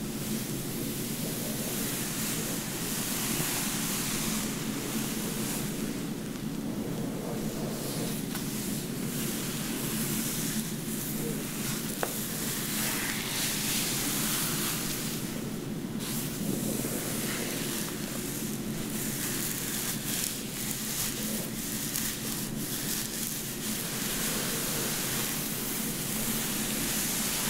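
Fingers rub and scratch through hair close up with a soft rustling.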